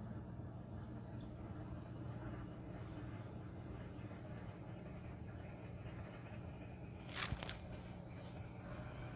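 Water bubbles and churns inside a tank.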